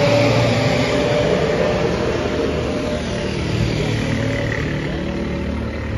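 A motorcycle engine buzzes as the motorcycle rides past.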